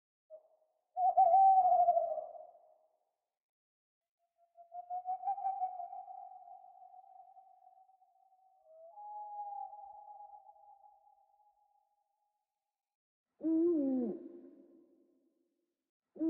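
An owl hoots in a series of low, wavering calls.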